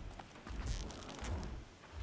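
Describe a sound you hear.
A bowstring creaks as it is drawn.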